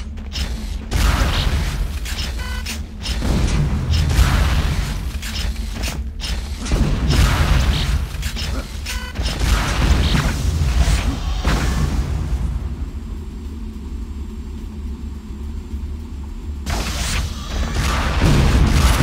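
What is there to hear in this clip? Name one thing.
A heavy gun fires in loud rapid bursts.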